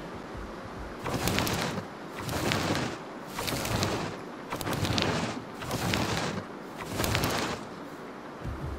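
A large creature munches and tears at leafy plants in loud bursts.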